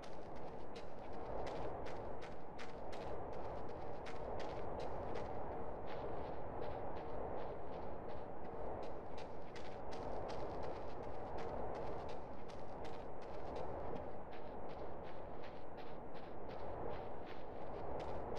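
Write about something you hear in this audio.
Footsteps run quickly and steadily over rough ground.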